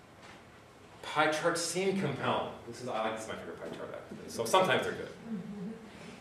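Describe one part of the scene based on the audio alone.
A man speaks calmly to an audience in a large room with a slight echo.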